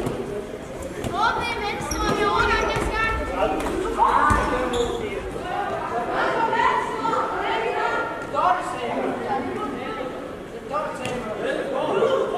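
Sports shoes squeak on a hard floor.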